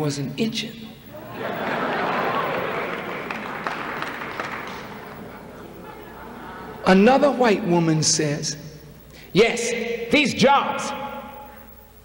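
A man speaks forcefully into a microphone, amplified through loudspeakers in a large echoing hall.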